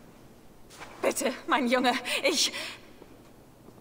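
A woman speaks pleadingly, close by.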